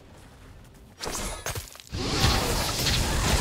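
A magic blast bursts with a sharp crackle.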